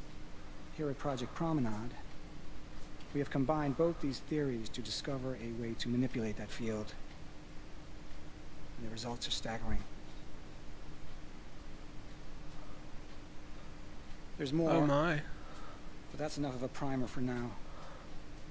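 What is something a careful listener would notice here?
A young man speaks calmly to an audience.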